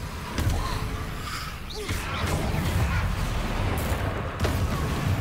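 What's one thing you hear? Magic spells crackle and blast with sharp bursts.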